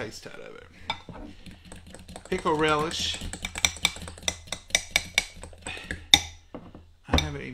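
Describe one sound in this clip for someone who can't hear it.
A fork clinks rapidly against a glass bowl while whisking.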